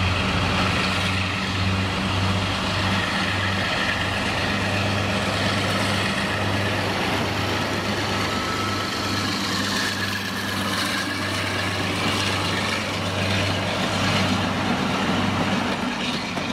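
A Class 52 Western diesel-hydraulic locomotive passes close by under power, its twin engines droning.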